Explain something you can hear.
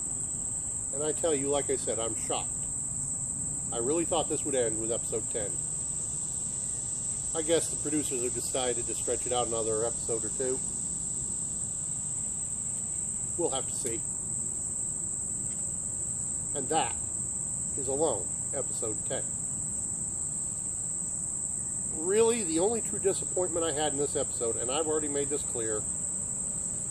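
A man talks calmly close by, with pauses.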